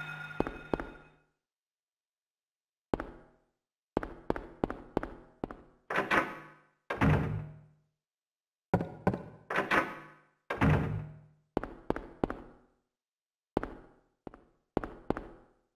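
Footsteps run across a tiled floor in an echoing room.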